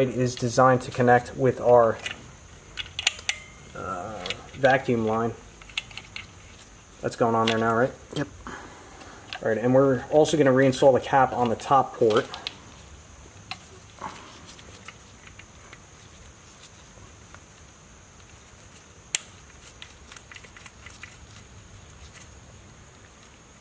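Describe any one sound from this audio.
Brass fittings click and scrape softly as they are screwed together.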